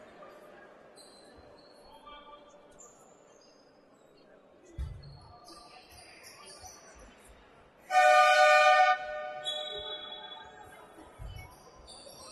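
A basketball bounces on the court floor.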